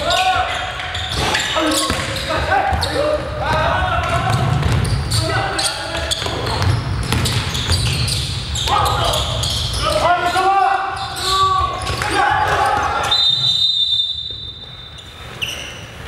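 Footsteps thud as players run across a wooden floor.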